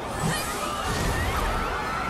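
A fireball roars as it explodes.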